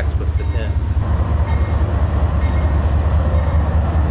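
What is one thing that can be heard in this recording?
Hens cluck.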